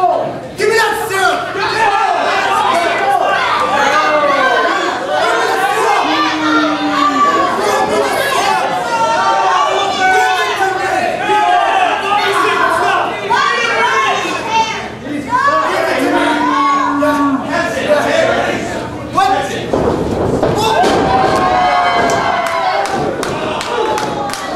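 A crowd chants and cheers loudly in an echoing hall.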